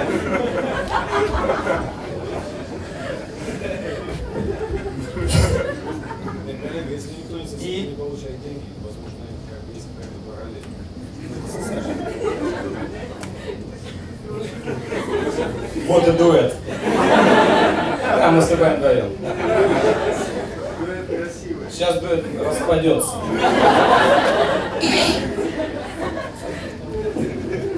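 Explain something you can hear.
A man talks with animation through a microphone and loudspeakers.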